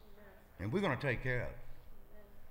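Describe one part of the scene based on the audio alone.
A man speaks briefly into a microphone, heard through loudspeakers in an echoing hall.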